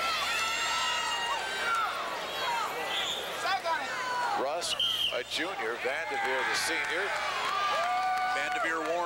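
Shoes squeak sharply on a wrestling mat.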